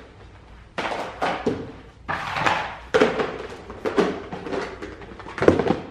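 Small objects rattle and clatter in a plastic box.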